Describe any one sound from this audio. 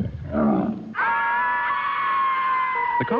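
A large bear lets out a long, steady howl.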